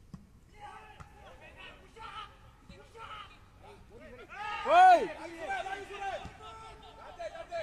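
Young men shout to each other from a distance outdoors.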